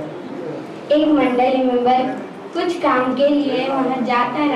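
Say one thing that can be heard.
A boy sings loudly with animation.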